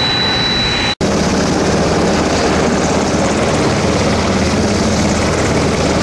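A helicopter's engine whines and its rotor thumps steadily nearby.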